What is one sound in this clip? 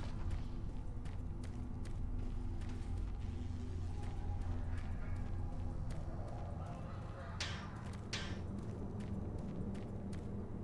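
Footsteps clank steadily on a metal floor.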